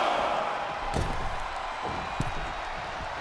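Heavy thuds of bodies hitting the ring.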